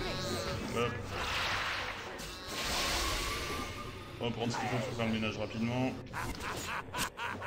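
Spells whoosh and crackle in a game battle.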